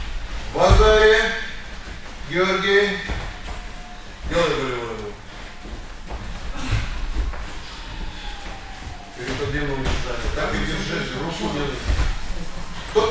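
Bodies thump on a padded mat.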